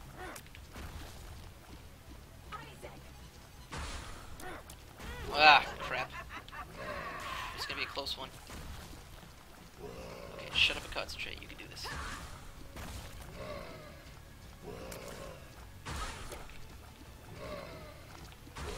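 Game sound effects of blasts and wet splatters burst out again and again.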